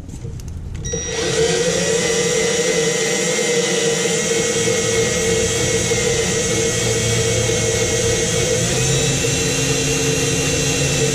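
A battery grease gun whirs steadily.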